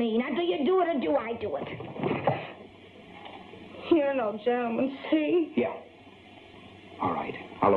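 A woman speaks anxiously.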